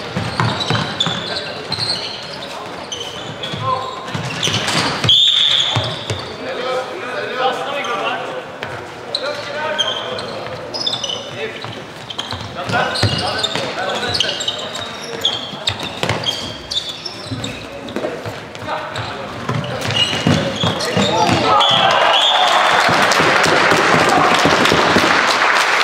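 Shoes squeak on a hall floor.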